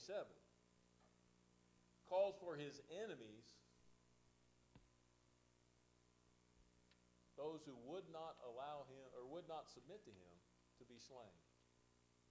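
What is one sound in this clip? An older man speaks calmly through a microphone in a large room, with pauses between phrases.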